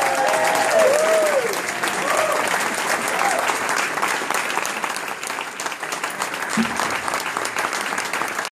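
A jazz band plays loudly.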